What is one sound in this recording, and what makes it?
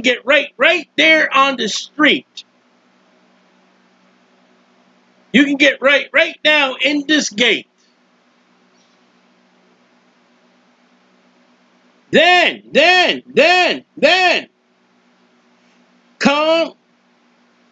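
A middle-aged man speaks with animation in bursts close to a microphone.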